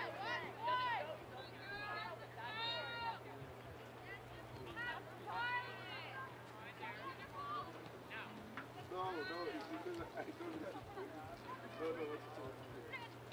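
Young women shout to each other across an open field in the distance.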